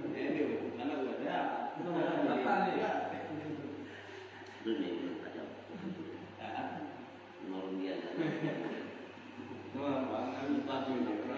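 Men chant together in a group, in an echoing room.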